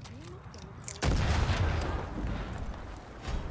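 A loud explosion booms and rumbles close by.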